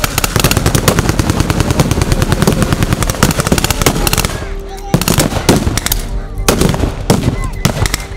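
Rifles fire in rapid, crackling volleys outdoors.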